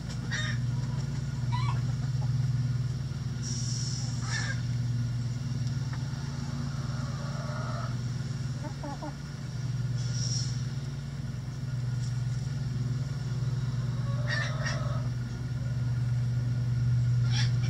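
Chickens scratch and peck in dry leaves.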